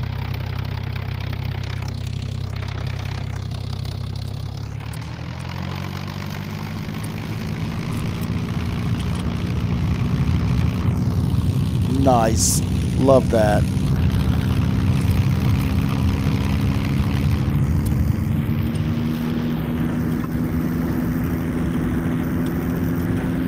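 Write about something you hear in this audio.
A propeller plane engine drones steadily and rises in pitch as it revs up.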